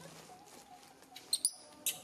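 A monkey squeaks nearby.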